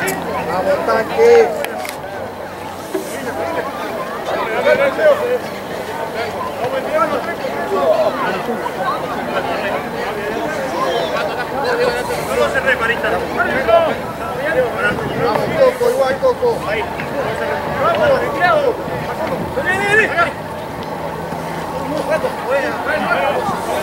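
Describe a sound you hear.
Rugby players shout and call to each other.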